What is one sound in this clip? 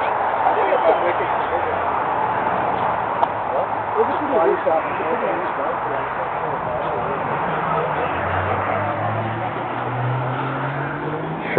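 A crowd of men and women chatters outdoors at a distance.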